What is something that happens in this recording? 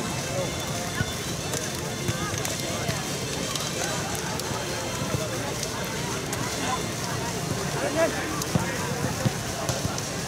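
Players slap hands as they pass in a line.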